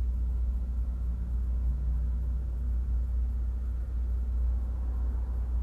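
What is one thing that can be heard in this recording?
Another car drives slowly past nearby.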